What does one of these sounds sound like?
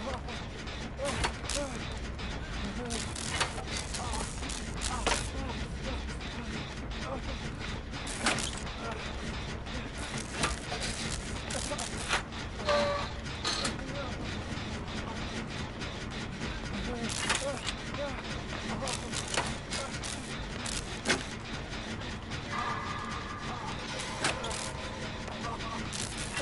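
Metal parts clank and rattle on a sputtering engine.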